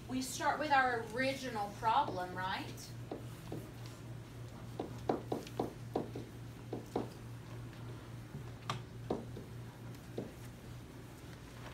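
A marker taps and squeaks on a board.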